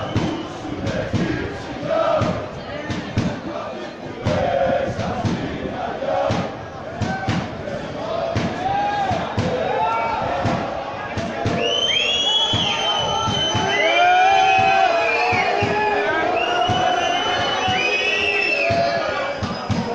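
A large crowd of spectators chants and shouts nearby, outdoors.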